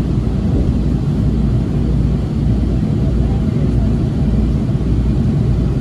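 A train begins to pull away and rolls along the tracks.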